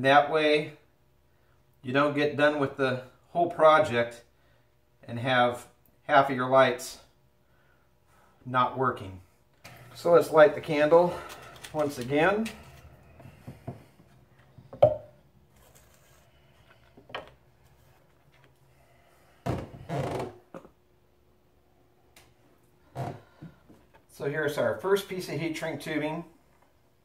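Small tools click and tap on a wooden board.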